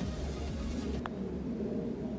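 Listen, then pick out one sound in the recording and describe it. A putter taps a golf ball with a light click.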